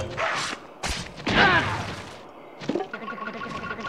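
A blade slashes and strikes with heavy impacts.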